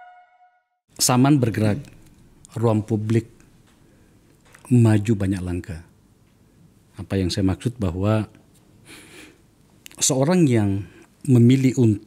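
A middle-aged man speaks calmly and close into a microphone, in short bursts with pauses.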